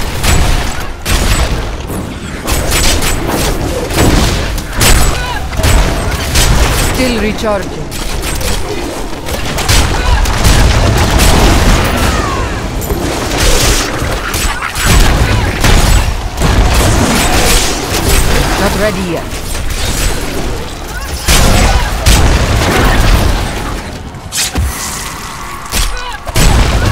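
Spells crackle and blast in a fight against monsters.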